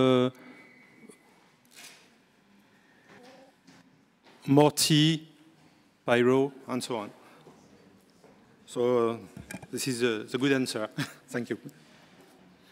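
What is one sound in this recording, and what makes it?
A man speaks into a microphone in short bursts, calmly explaining.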